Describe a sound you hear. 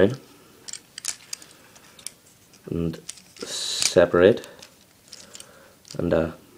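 Small plastic parts click and snap as a toy is handled.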